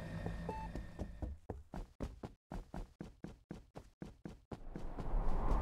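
Quick soft footsteps patter steadily.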